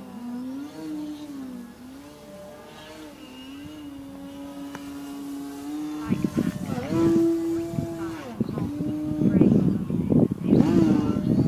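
A small model plane's engine whines overhead, rising and falling in pitch.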